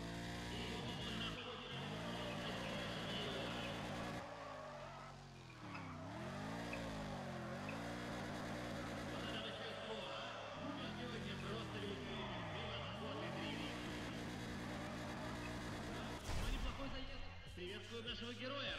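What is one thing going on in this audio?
A racing car engine revs up and down as the car drifts.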